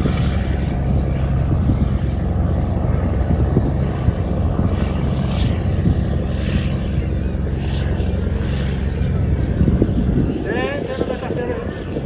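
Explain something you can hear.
Water churns and splashes behind a boat.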